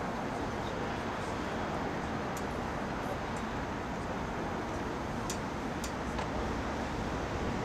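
Wind rumbles steadily across an open outdoor space.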